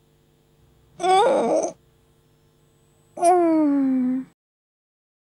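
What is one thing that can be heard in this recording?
A young woman yawns and groans as she stretches, close by.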